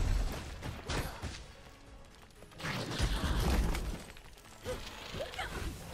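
Sparkling magic crackles and chimes.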